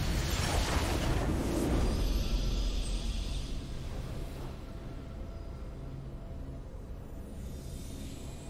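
A triumphant fanfare swells and then fades to a low hum.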